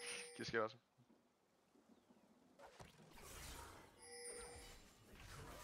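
Video game sound effects chime and whoosh.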